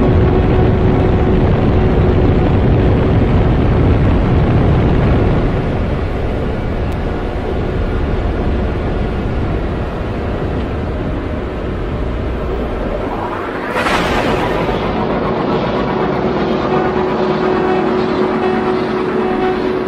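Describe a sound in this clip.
A spaceship engine rumbles steadily.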